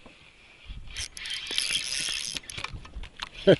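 A fishing reel clicks and whirs as its handle is turned.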